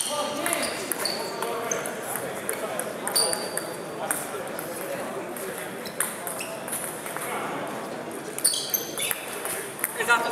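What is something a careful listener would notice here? Shoes squeak on a wooden floor in a large echoing hall.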